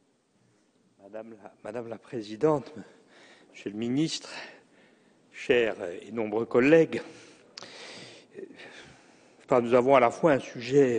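A middle-aged man speaks into a microphone with animation in a large echoing hall.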